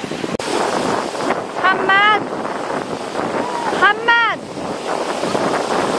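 Children shout and laugh in the water.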